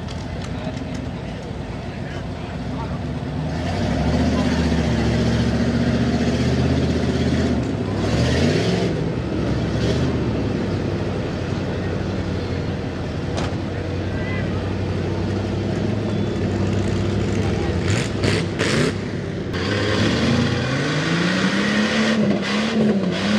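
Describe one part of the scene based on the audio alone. A truck engine revs hard and roars, rising and falling.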